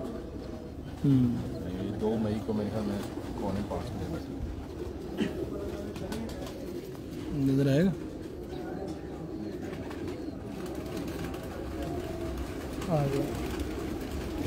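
A pigeon coos close by.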